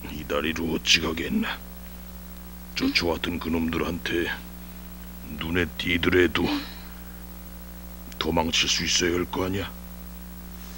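A woman speaks softly, close by.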